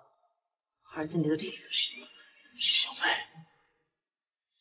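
A young woman speaks sharply.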